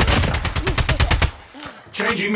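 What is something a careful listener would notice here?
Gunfire rattles in a burst.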